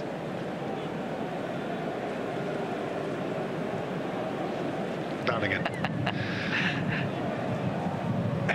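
A football is kicked on grass.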